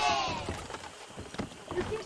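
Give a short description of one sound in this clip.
An oar splashes in water.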